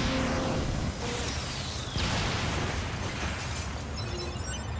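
Sword slashes clang and crackle against metal.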